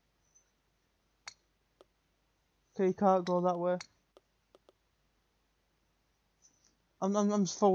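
A golf club taps a ball with a light click.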